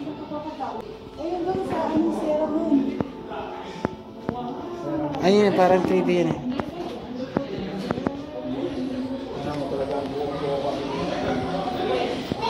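Adult men and women talk quietly nearby.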